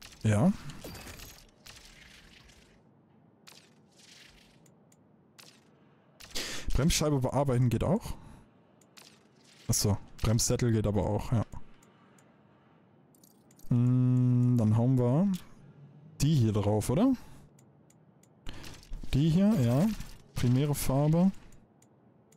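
A man talks with animation into a close microphone, in short bursts.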